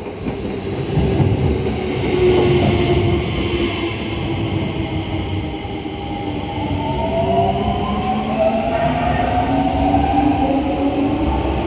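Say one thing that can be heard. An electric train pulls away with a rising motor whine.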